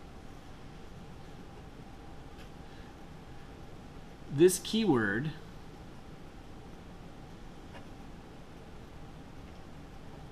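A marker squeaks and scratches across paper.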